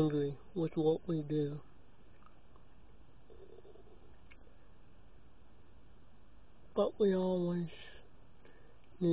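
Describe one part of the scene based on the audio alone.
A man speaks close to a microphone, in short bursts with long pauses.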